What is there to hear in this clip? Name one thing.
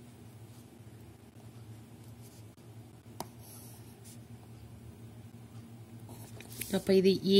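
A pen scratches faintly on paper.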